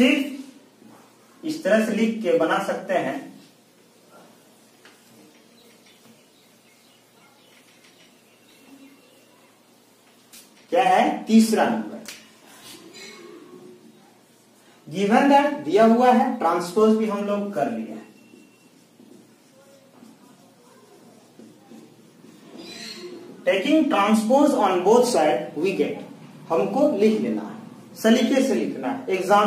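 A man talks steadily, close by.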